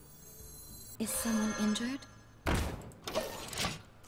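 A card game's sound effect chimes as a second card is played.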